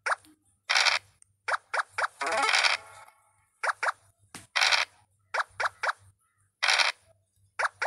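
Game pieces hop along the board with short quick pops.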